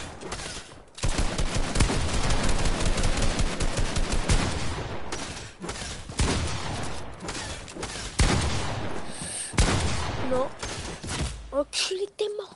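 Game building pieces snap into place in quick, loud bursts of clattering.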